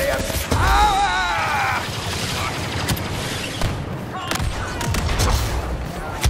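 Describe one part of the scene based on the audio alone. A lightsaber hums and swings.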